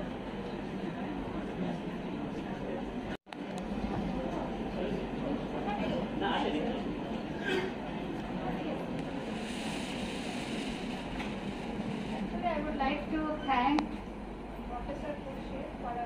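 Men and women murmur and chat quietly in a large echoing hall.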